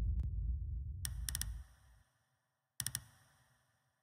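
Short, bright menu clicks sound in quick bursts.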